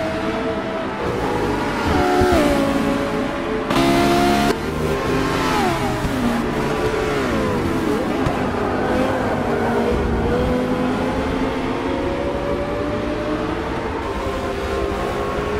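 Racing car engines roar and whine as they speed past, shifting pitch up and down.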